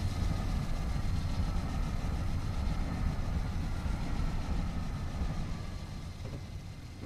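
A passenger train rumbles past close by and fades away.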